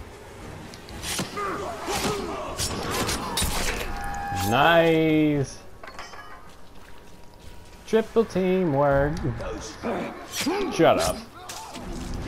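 Blades clash and slash in a fight.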